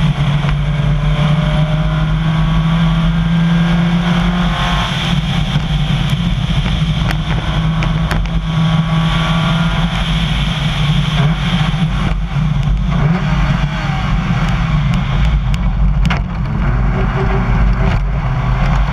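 A rally car engine runs at full throttle through the gears.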